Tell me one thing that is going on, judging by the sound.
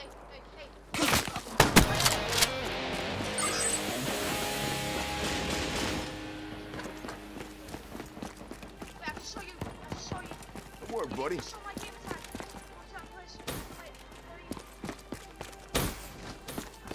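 Gunfire cracks in short, loud bursts.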